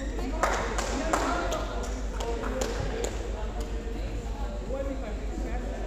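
Sports shoes squeak on an indoor court floor.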